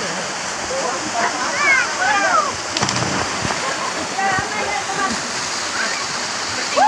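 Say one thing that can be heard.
Young men shout and whoop outdoors.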